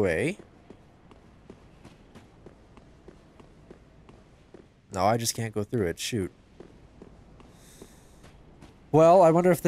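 Armoured footsteps clank softly on stone.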